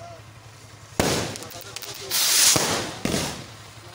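Fireworks burst and crackle loudly outdoors.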